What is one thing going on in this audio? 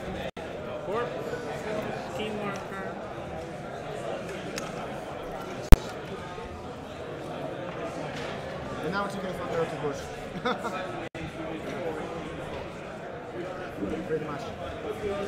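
Small game pieces click softly on a tabletop board.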